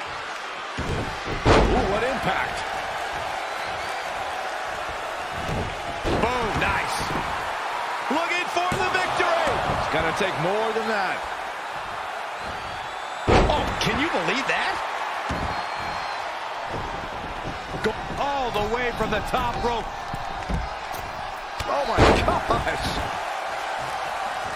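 An arena crowd roars and cheers throughout.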